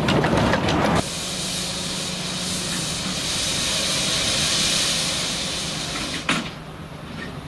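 Steam hisses loudly from a locomotive.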